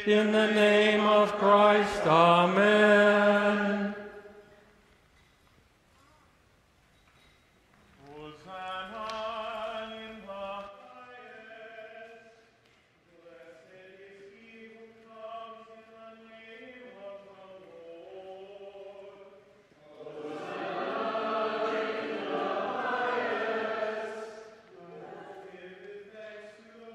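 A congregation and choir sing a hymn together, echoing in a large hall.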